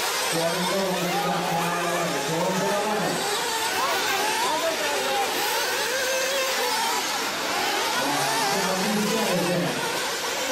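Small model car engines whine and buzz, rising and falling in pitch as the cars race.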